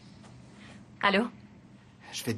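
A woman speaks briefly into a phone.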